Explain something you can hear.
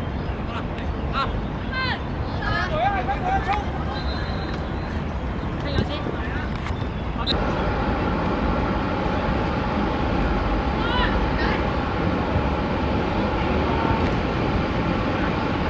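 Children shout and call out in the open air.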